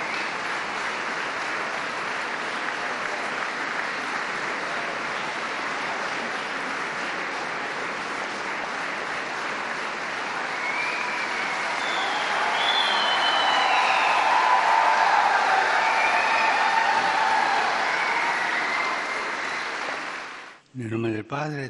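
A large crowd claps and cheers in a big echoing hall.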